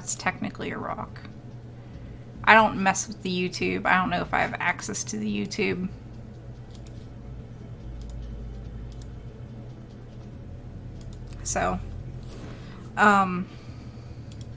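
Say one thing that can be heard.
A woman talks with animation into a close microphone.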